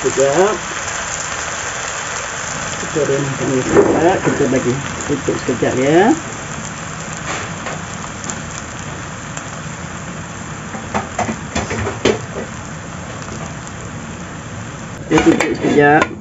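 Food simmers and bubbles softly in a pan.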